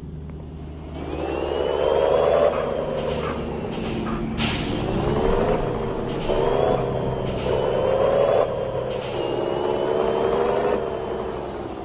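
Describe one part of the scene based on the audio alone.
A heavy truck engine revs up and changes gears as it pulls away.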